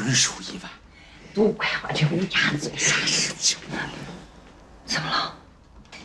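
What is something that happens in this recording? A middle-aged woman speaks with animation, laughing a little.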